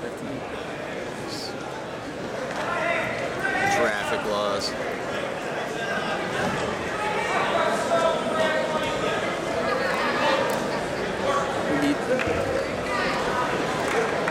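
A crowd of spectators murmurs and shouts in a large echoing gym.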